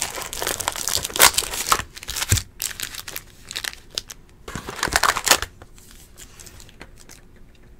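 Cards and packs click and tap against each other.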